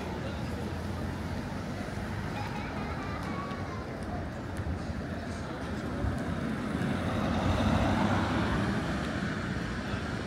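A car drives past.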